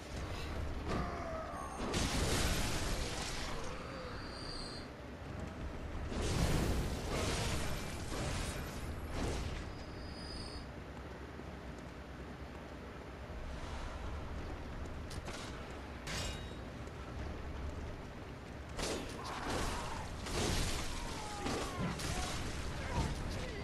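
Blades slash and clang in a violent fight.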